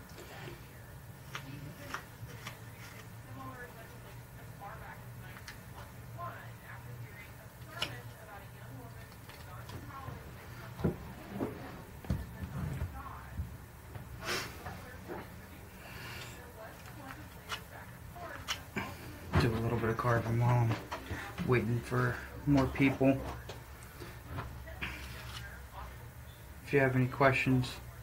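Small clicks and rustles come from hands handling a small object.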